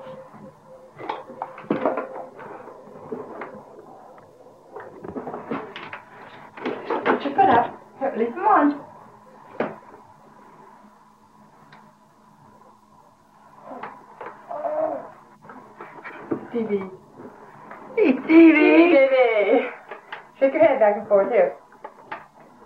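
A toddler babbles and sings loudly nearby.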